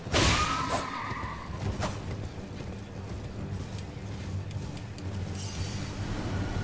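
A horse gallops with heavy, steady hoofbeats.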